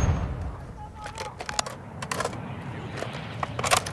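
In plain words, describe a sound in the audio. A rifle's bolt and magazine click and clack during a reload.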